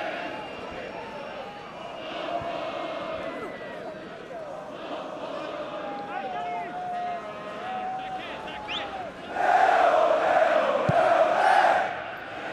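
A large stadium crowd chants and whistles.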